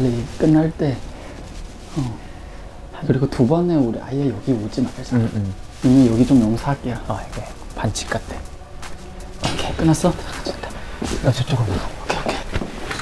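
A young man talks with animation up close.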